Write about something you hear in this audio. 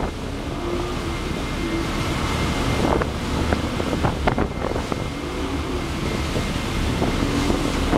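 A churning wake rushes and splashes behind a speeding boat.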